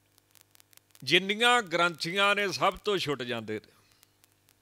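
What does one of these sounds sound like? A man sings into a microphone in a drawn-out, melodic voice.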